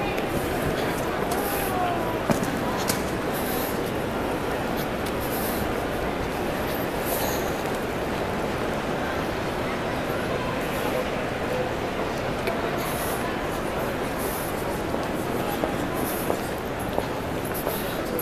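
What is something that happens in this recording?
Suitcase wheels roll across the floor.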